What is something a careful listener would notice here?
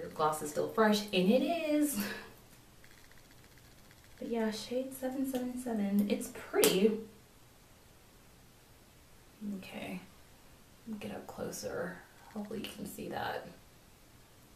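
A young woman talks close to the microphone with animation, in short bursts.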